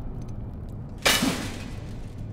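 A weapon strikes with a sudden loud crash.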